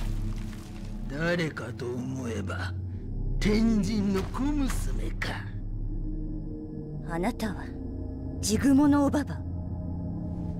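A deep, menacing male voice speaks slowly with a growl.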